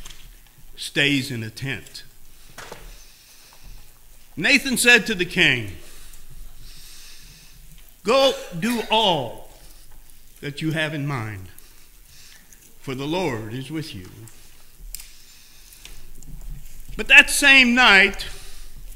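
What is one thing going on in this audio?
An elderly man speaks slowly and calmly into a microphone, with pauses, in a room with a slight echo.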